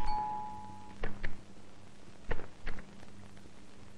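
A door latch clicks and a door opens.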